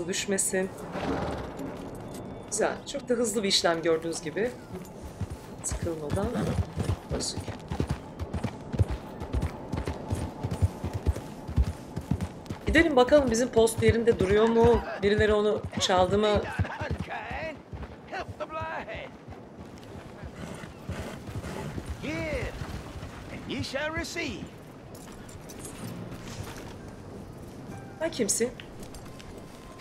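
A woman talks calmly into a microphone.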